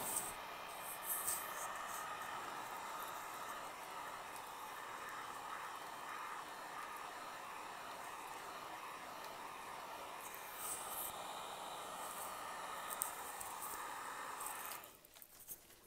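A heat gun blows with a steady roaring hiss.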